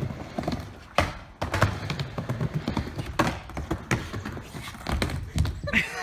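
A skateboard slams down hard on a ramp.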